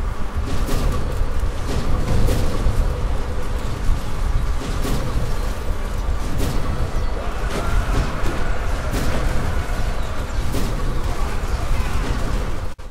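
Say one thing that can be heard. Heavy wooden siege towers rumble and creak as they roll forward.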